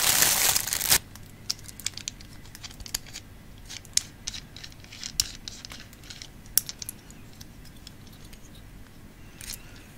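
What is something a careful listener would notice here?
Metal parts click and scrape as hands twist a small tripod.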